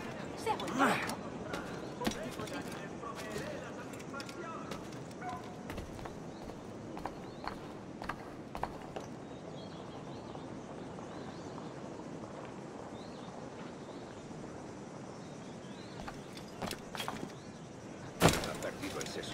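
Footsteps scrape and clatter on roof tiles.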